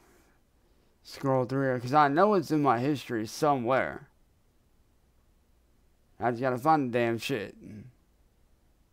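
A young man talks casually into a close microphone, in two short bursts.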